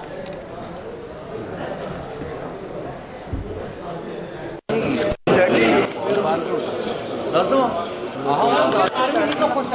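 A crowd of men chatters in a busy room.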